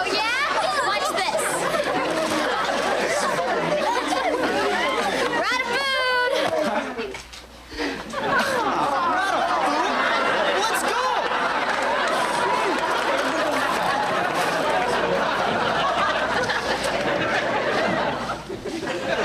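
A studio audience laughs and cheers loudly.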